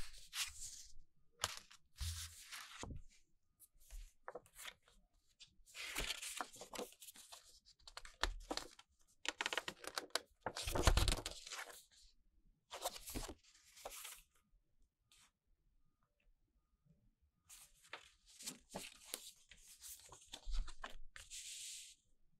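Cardboard and paper sheets slide and tap against each other.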